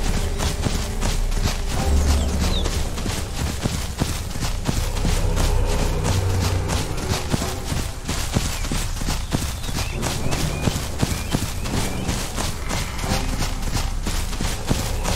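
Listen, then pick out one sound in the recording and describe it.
A large creature's footsteps thud rhythmically on the ground.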